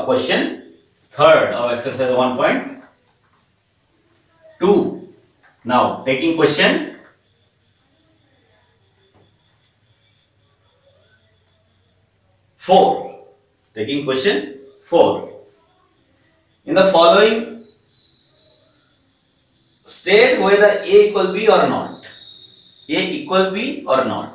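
A man talks calmly in short bursts, close to a microphone.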